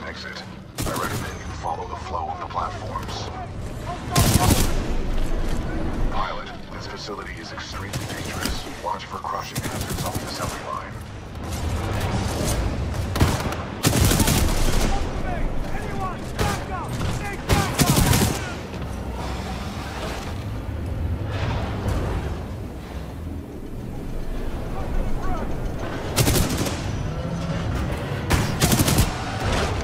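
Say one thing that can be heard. Gunshots fire in loud, sharp bursts with echoing blasts.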